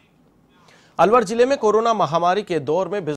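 A man speaks clearly and steadily into a microphone, like a news presenter.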